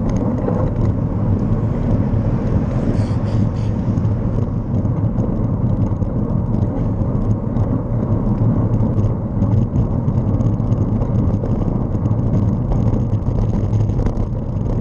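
Wind buffets and rumbles steadily while moving along a road.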